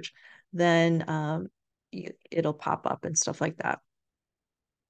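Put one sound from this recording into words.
An older woman speaks calmly through a microphone.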